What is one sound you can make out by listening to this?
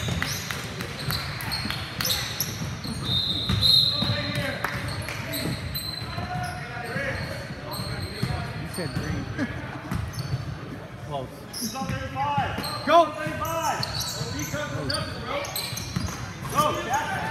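Sneakers squeak sharply on a wooden court, echoing in a large hall.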